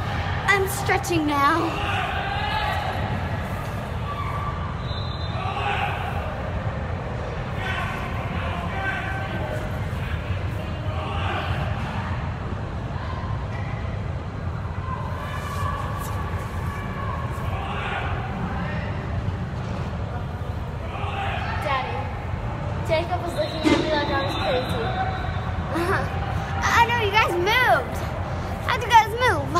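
A young girl talks and giggles close by.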